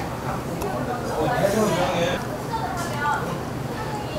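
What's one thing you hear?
Liquor pours into a glass.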